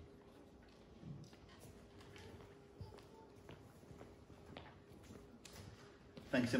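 Footsteps cross a hard floor.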